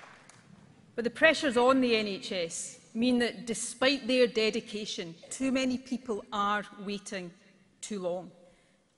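A middle-aged woman speaks firmly into a microphone over loudspeakers.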